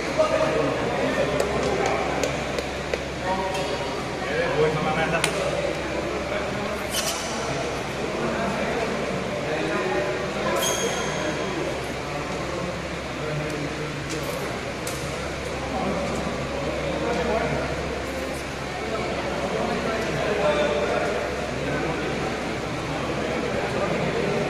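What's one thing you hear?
Men talk with animation in a large echoing hall.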